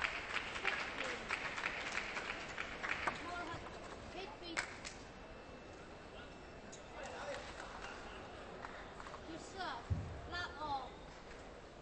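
A table tennis ball bounces and is struck with paddles.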